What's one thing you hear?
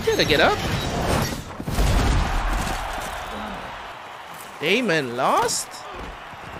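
A young man exclaims with animation close to a microphone.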